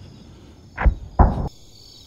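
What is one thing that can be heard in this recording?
A helicopter flies overhead with its rotor thumping.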